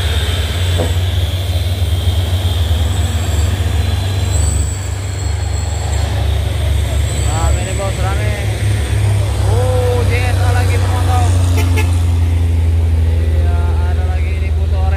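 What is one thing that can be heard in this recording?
Tyres hum on an asphalt road.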